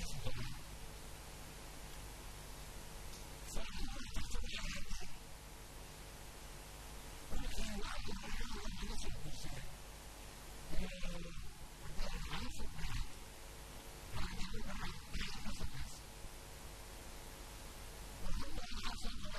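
An elderly man speaks with animation into a microphone in an echoing hall.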